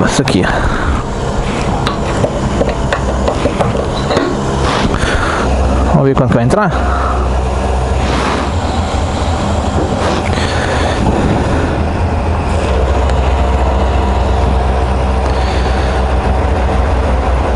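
A fuel pump hums steadily.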